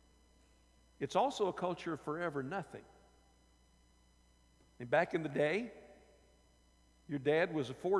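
An older man speaks with animation into a microphone, in short bursts with pauses.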